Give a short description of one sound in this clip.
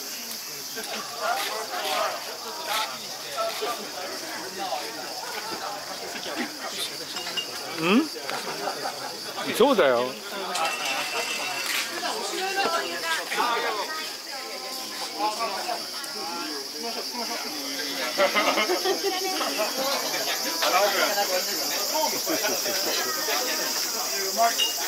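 Dishes and chopsticks clink on plates.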